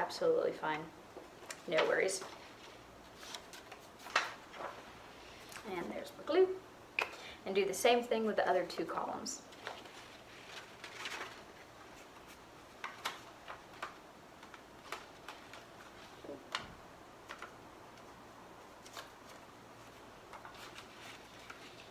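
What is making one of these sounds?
Paper rustles and crinkles in hands.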